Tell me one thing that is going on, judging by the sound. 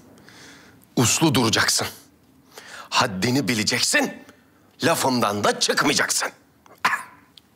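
A man speaks with surprise and animation.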